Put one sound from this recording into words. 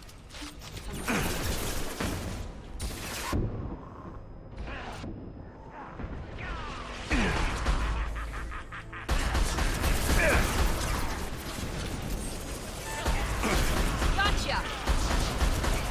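Rifle shots crack and blast repeatedly.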